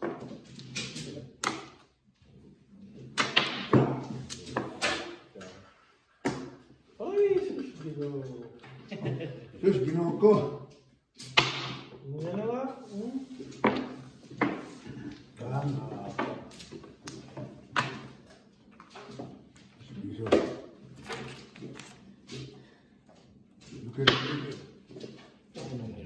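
Mahjong tiles clack against each other and the table.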